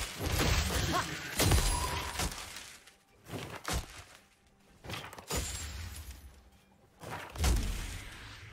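Spell effects and weapon hits crackle and thud in a game battle.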